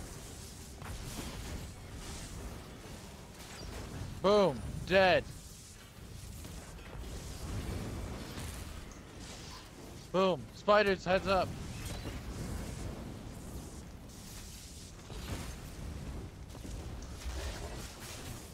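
Electric spells crackle and zap in a fight.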